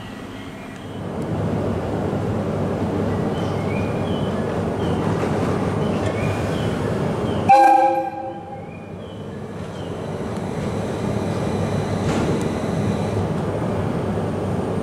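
A stopped train's motor hums and rumbles steadily nearby.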